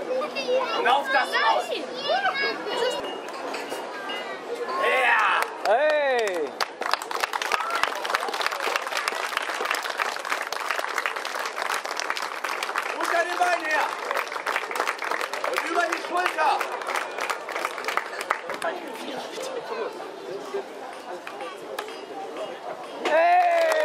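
A man speaks loudly and with animation to an audience outdoors.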